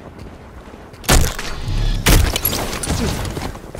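Gunshots crack in short loud bursts.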